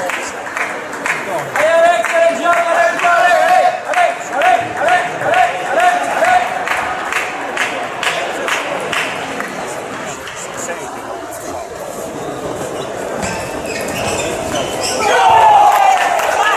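Table tennis balls click against bats and tables in a large echoing hall.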